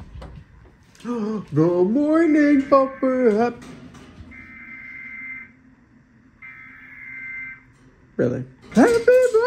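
A large dog howls and whines loudly up close.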